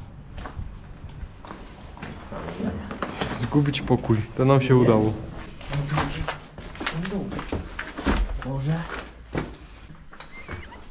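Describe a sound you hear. Footsteps crunch on rubble and debris.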